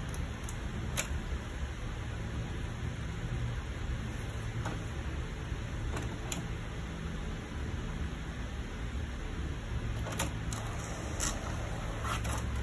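A printer whirs and clicks as it feeds paper through.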